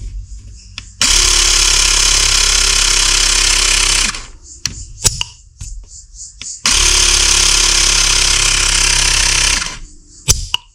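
A small electric air pump whirs loudly in two bursts, starting and stopping abruptly.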